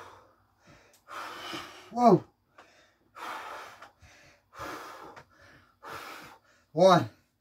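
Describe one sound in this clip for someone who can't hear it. A man breathes heavily close by.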